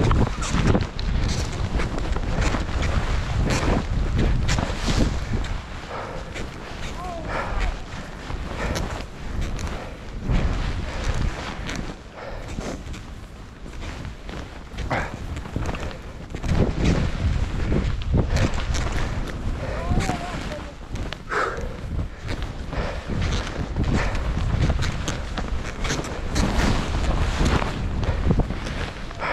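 Wind rushes past a downhill skier.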